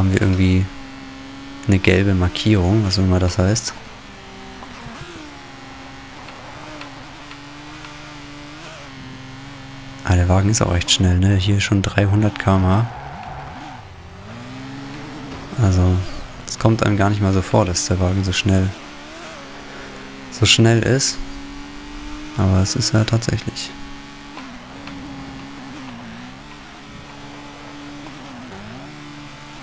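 A racing car engine drones steadily, its pitch rising and falling with the revs.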